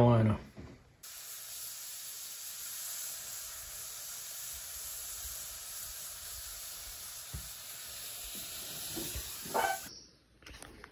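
A gas grill's burners hiss steadily.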